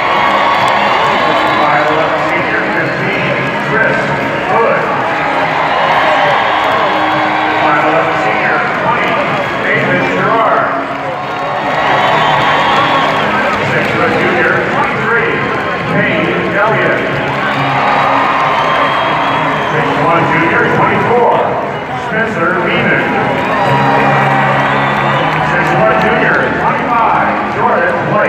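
A large crowd sings together, echoing through a big arena.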